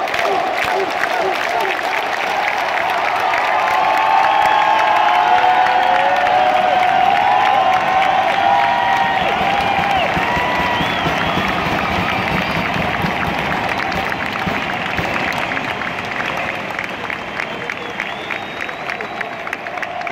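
A large stadium crowd chants and cheers, echoing through an open arena.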